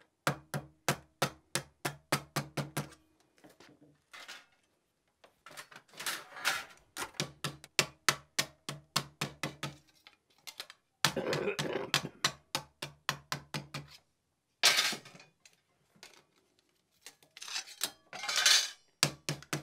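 A wooden mallet taps rapidly and steadily on sheet metal, with a short ringing after each blow.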